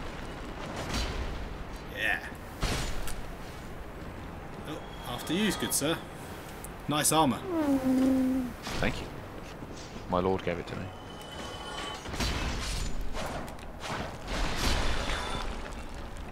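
Metal weapons swing and clang in a fight.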